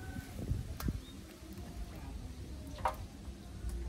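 Water drips and trickles from a woven basket.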